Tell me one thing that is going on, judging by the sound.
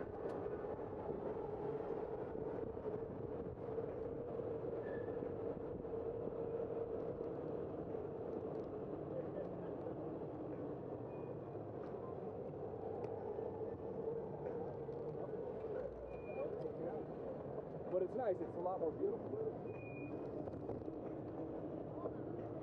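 A bicycle's tyres hum on the road.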